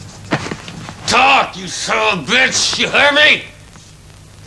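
A man speaks close up in a low, threatening voice.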